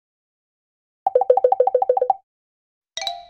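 A young girl giggles in quick bursts.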